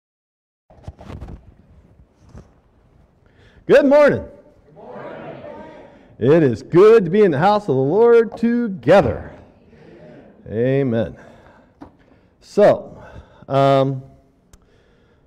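An elderly man preaches with animation into a microphone in an echoing hall.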